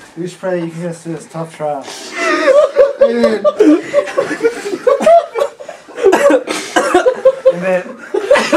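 Young men talk and laugh loudly close by.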